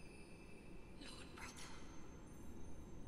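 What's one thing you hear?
A young woman speaks briefly and softly into a close microphone.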